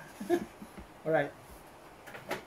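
A middle-aged man laughs softly close by.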